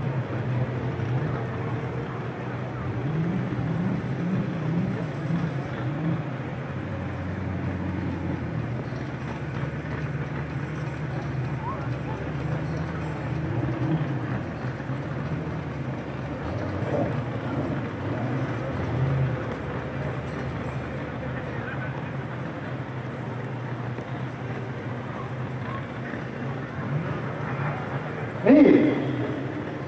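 Car engines rumble as cars roll slowly past.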